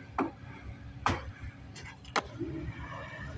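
Skateboard wheels land with a hard clatter.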